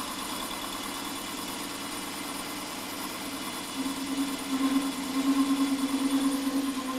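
A lathe hums steadily as it spins.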